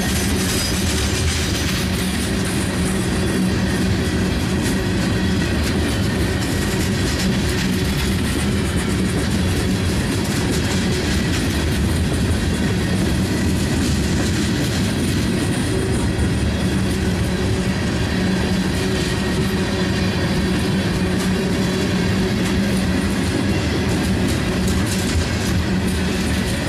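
Freight cars rumble steadily past close by on the rails.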